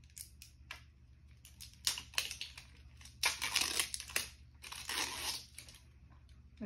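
Plastic packaging crinkles and rustles in a young girl's hands.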